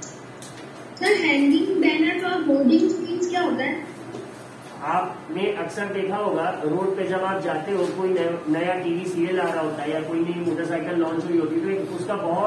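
A young woman speaks over an online call, heard through a loudspeaker.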